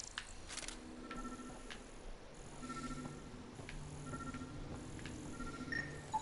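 A scanning beam hums.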